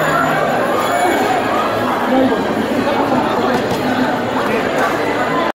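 A crowd of men and women chatter all around in a busy, echoing room.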